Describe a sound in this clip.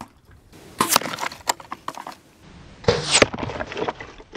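Arrows thud sharply into a target outdoors.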